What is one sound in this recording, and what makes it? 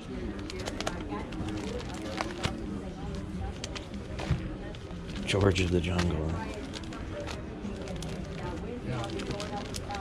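Plastic comic sleeves rustle as a hand flips through them.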